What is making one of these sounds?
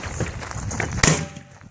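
A shotgun blast booms outdoors.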